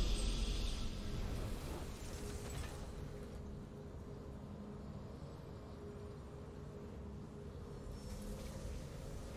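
A deep, swelling game victory fanfare plays and slowly fades.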